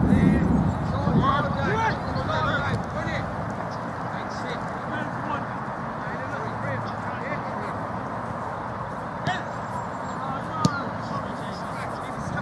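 Men shout to each other across a pitch, far off.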